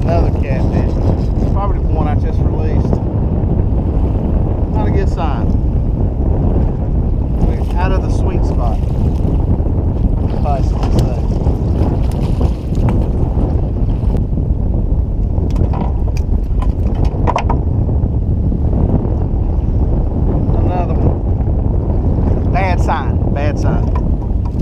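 Wind blows steadily and rumbles outdoors on open water.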